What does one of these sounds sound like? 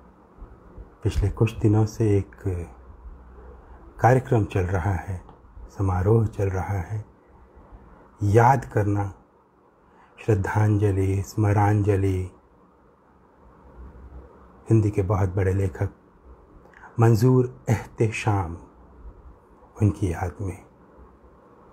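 A man speaks earnestly and close up, in short bursts with pauses.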